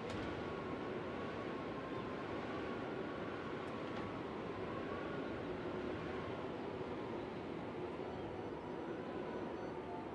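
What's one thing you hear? An accordion plays a slow, sustained melody in an echoing hall.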